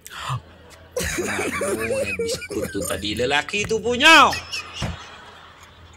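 A young man laughs loudly and heartily.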